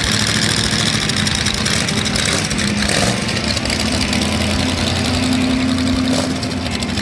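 A car engine rumbles loudly through an open exhaust as the car pulls away.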